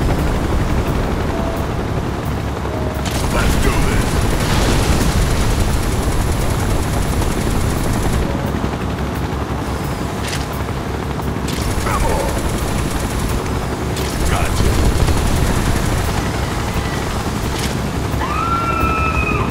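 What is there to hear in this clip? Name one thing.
A vehicle engine rumbles steadily over rough ground.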